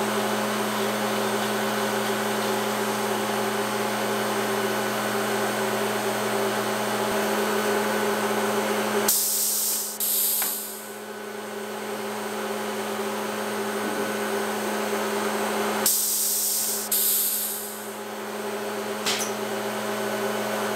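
A cutter whirs loudly.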